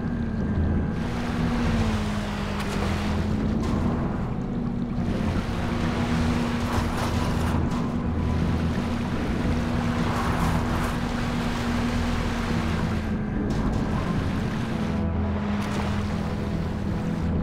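Water churns and splashes.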